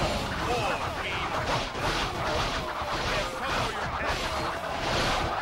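Swords clash and slash rapidly in a busy melee.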